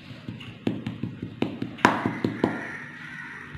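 A metal spoon knocks and scrapes against crumbly soil.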